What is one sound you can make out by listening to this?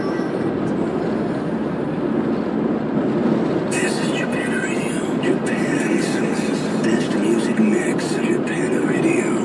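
A car drives steadily along a road, its tyres rumbling and the engine humming inside.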